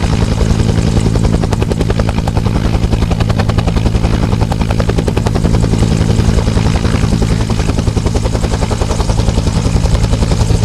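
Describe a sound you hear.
A helicopter's rotor thumps loudly and steadily close by.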